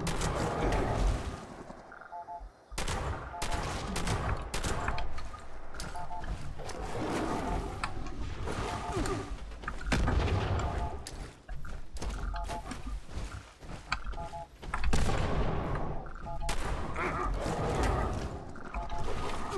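A creature growls and roars.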